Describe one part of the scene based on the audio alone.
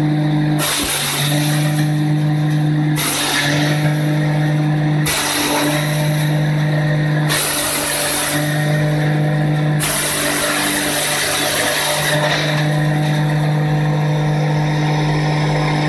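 Ground material sprays and hisses out of a crusher in bursts.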